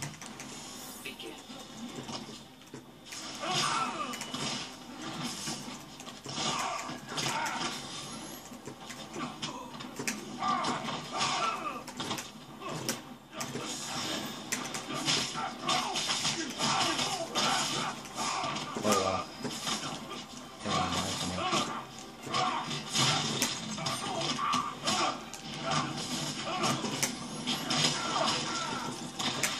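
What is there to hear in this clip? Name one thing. Fighting game punches, kicks and blasts thud and crackle from a television speaker, heard through a room.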